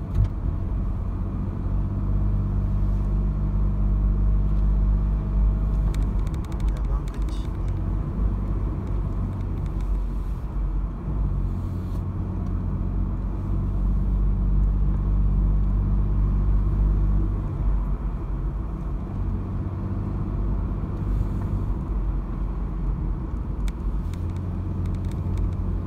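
A car engine hums steadily from inside, rising and falling in pitch as the car drives along a winding road.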